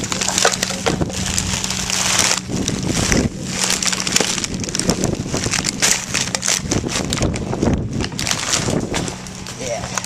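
Plastic bags rustle and crinkle as a foot stomps them down in a bin.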